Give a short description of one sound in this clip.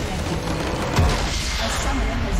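A large structure explodes with a deep boom and crumbling rubble.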